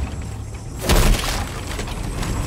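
A burst of magical energy whooshes loudly.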